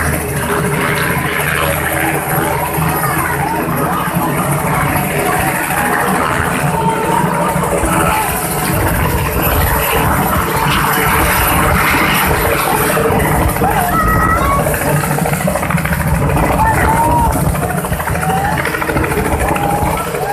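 A helicopter's rotor thumps and roars loudly as it lifts off and climbs away.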